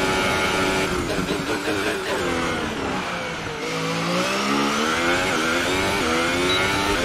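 A racing car engine drops in pitch while braking, then revs back up through the gears.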